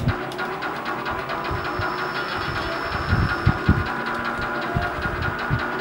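Game music plays with a fast beat from a television.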